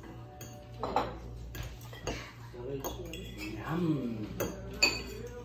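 Forks clink against plates.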